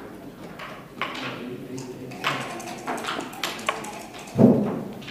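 Game pieces click against a wooden board as they are moved.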